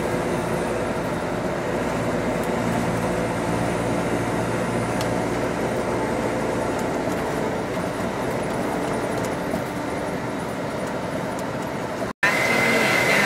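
Tyres roll over the road with a steady rush.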